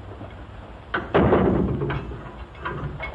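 A metal cell door clangs shut.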